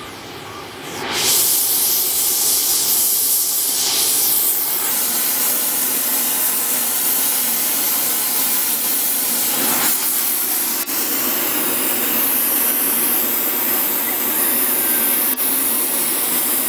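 A gas torch roars steadily.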